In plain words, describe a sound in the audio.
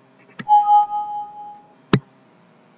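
A computer alert chime sounds once and rings out.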